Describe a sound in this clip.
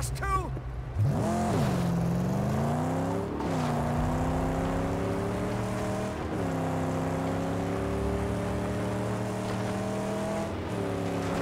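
A car engine roars and revs up through the gears as the car speeds away.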